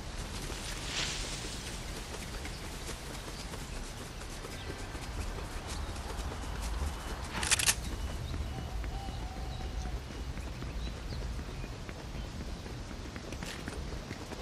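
Footsteps run quickly over grass and a dirt path.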